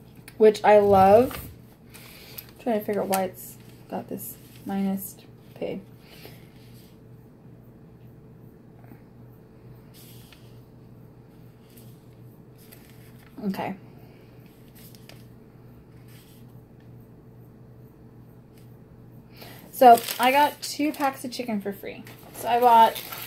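A woman speaks casually close by, pausing now and then.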